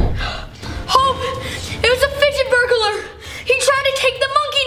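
A boy shouts with animation nearby.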